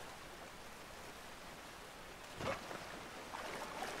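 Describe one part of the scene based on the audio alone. Water splashes as someone wades into a stream.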